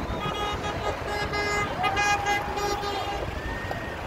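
Car horns honk repeatedly from passing traffic.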